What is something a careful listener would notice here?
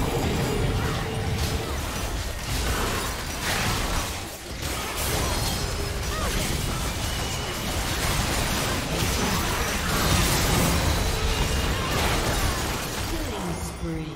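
Game spell effects crash, zap and explode in a busy battle.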